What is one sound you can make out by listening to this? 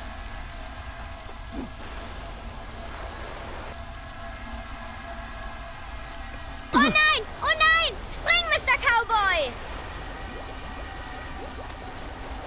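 Magical sparkles shimmer and twinkle softly.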